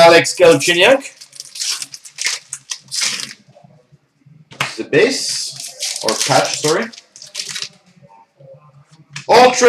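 A foil wrapper crinkles and tears as hands open a pack.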